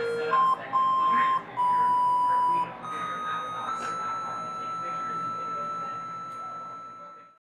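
A saxophone plays a slow melody of long held notes, then fades out.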